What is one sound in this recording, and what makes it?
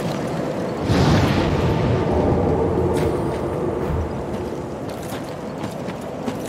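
A fire flares up with a loud whoosh and crackles.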